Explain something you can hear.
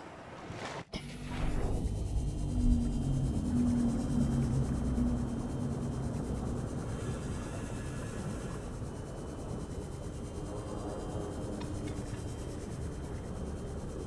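A small motor hums with a low, steady drone underwater.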